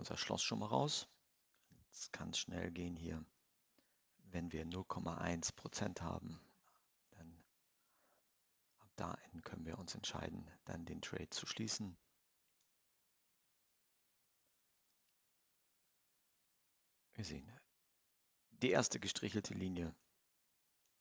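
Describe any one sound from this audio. A man speaks calmly into a close microphone, pausing now and then.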